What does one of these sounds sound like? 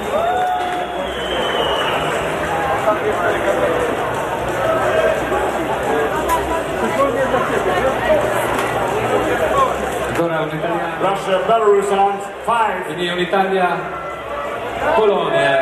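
A crowd of men and women shouts and cheers loudly close by.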